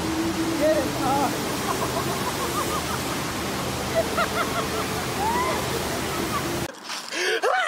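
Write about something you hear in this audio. Water rushes and splashes loudly.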